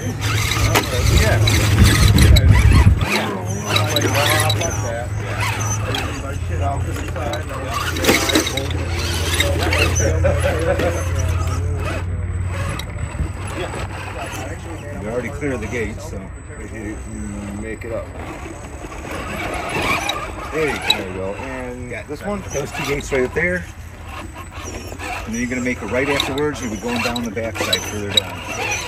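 A small electric motor whines in bursts as a toy truck crawls.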